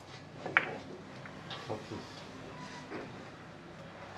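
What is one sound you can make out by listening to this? Billiard balls click against each other and roll on the cloth.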